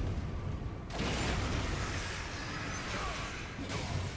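A blast of flame roars.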